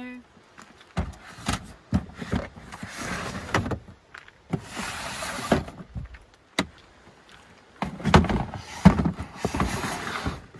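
A plastic bin scrapes and slides over a floor.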